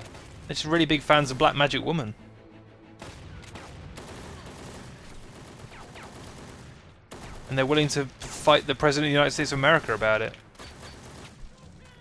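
A rifle fires short bursts of gunshots.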